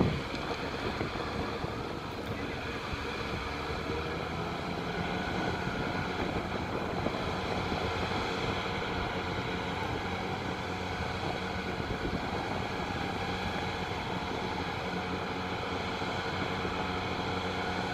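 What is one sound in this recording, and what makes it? A shallow river flows and gurgles.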